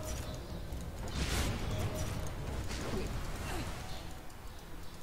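Magic spells whoosh and crackle in a video game.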